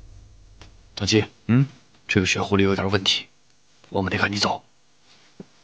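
A man speaks tensely, close by.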